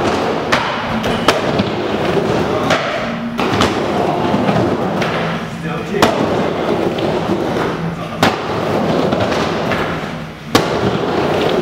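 Skateboards clack sharply against the bowl's edge.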